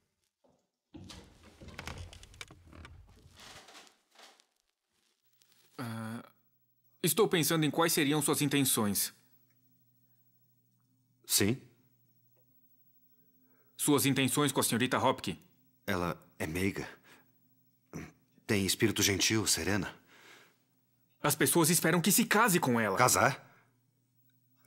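A man speaks calmly and firmly, close by.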